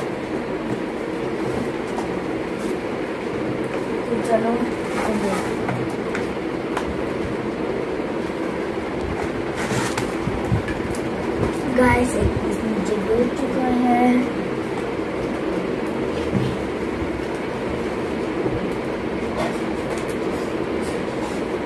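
Paper pages rustle and flip as a book is handled.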